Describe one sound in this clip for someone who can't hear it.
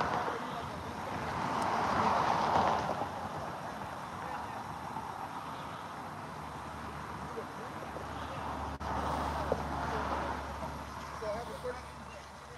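A car engine idles quietly nearby.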